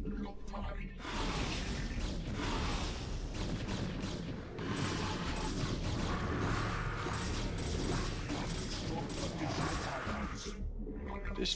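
Weapons fire and blasts crackle in a game battle.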